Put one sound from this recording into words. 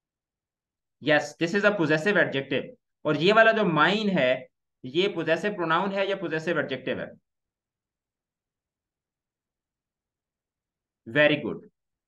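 A young man speaks calmly and clearly into a close microphone, in pauses.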